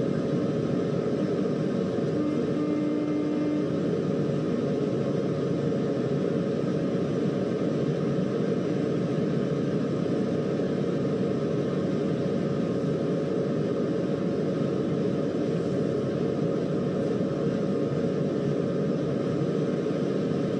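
A train engine rumbles steadily as the train rolls along the rails.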